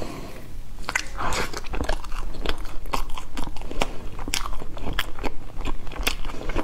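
A person chews food with wet smacking sounds close to a microphone.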